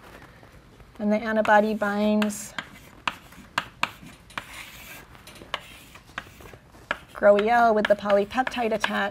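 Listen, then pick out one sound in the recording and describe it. A young woman speaks calmly, as if lecturing.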